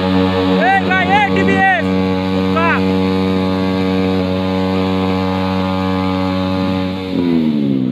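Motorcycle engines roar loudly at high revs.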